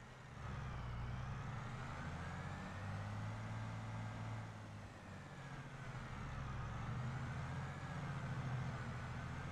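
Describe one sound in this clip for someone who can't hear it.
A tractor engine rumbles steadily, rising and falling slightly in pitch.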